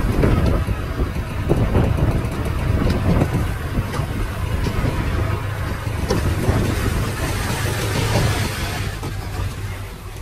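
Soil and stones slide and pour from a tipping truck bed.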